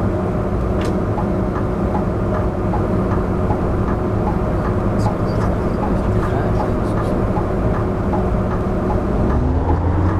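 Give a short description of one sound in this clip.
Tyres roll over the road with a steady rumble.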